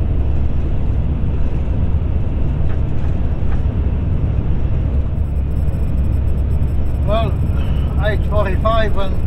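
A vehicle's engine drones steadily as it drives.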